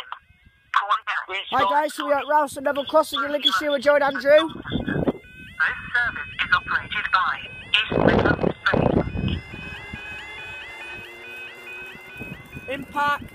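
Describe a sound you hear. A crossing alarm warbles in a repeating pattern.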